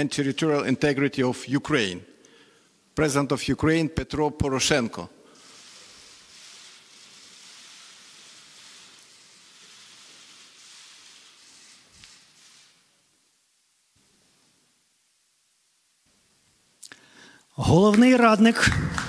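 A man announces formally through a microphone in a large hall.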